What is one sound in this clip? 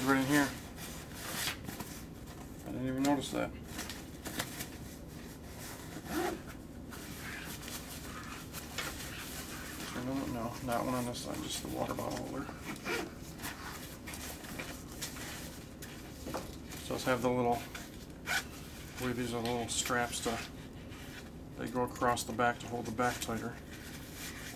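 Fabric of a bag rustles as hands handle it.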